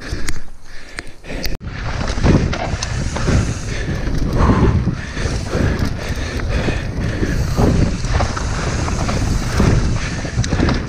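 Bicycle tyres crunch and skid over a dirt trail.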